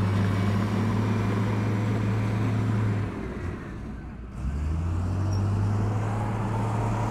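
A bulldozer engine rumbles steadily nearby.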